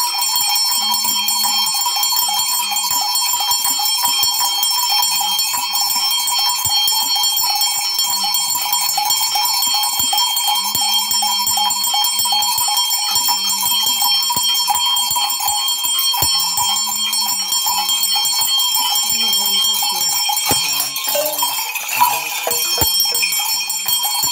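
Shells on a rattle stick shake and clatter.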